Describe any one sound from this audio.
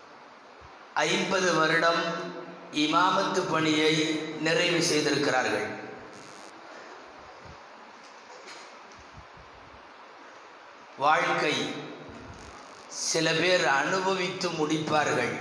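A man speaks forcefully into a microphone over a loudspeaker, in bursts with pauses, in an echoing hall.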